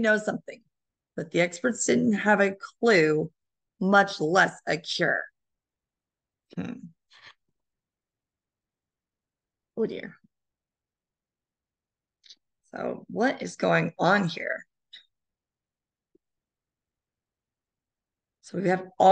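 A woman reads aloud with animation, close to a microphone over an online call.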